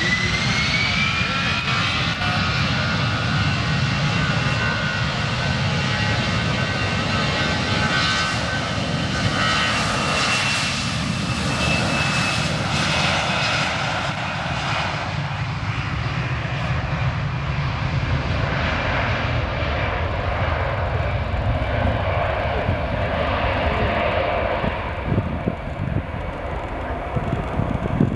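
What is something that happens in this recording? A jet airliner's engines roar loudly as it speeds down a runway close by.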